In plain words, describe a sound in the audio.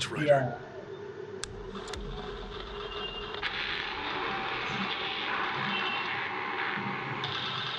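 A television plays a crackling, hissing broadcast.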